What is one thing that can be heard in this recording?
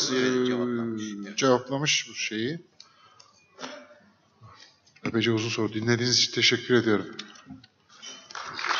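A man speaks into a microphone in a hall, with pauses between phrases.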